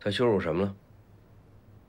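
A young man speaks briefly and calmly up close.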